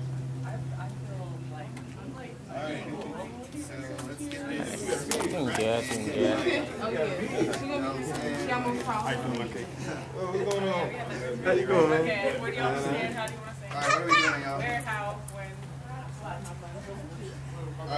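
A crowd of young men and women chat and talk over one another.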